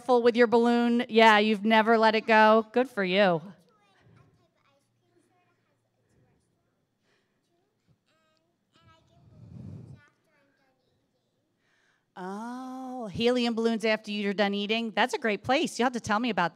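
A young woman sings into a microphone, heard through loudspeakers.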